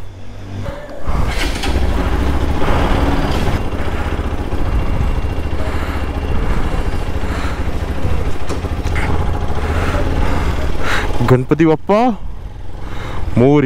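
A motorcycle rides along a street outdoors with a steady low rumble.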